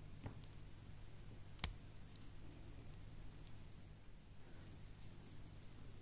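Small plastic pieces click and clatter as they are handled.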